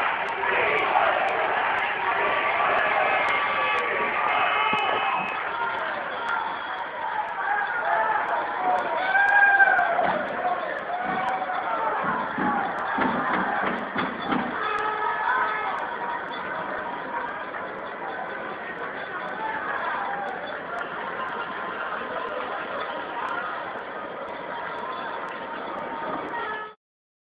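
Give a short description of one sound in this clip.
A large crowd of men and women shouts and chants outdoors.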